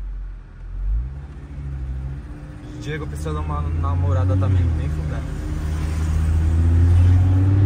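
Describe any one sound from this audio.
A car engine revs and growls louder as the car pulls away.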